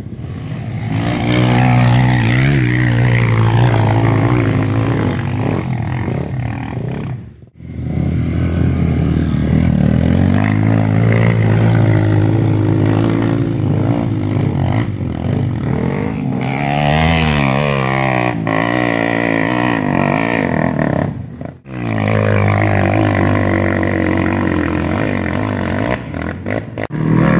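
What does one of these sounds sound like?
Dirt bike engines rev loudly and roar while climbing a hill.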